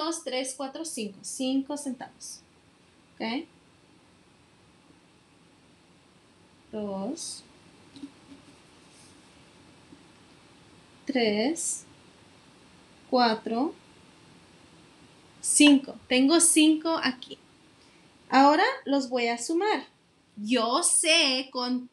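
A young woman talks calmly and cheerfully, pausing often.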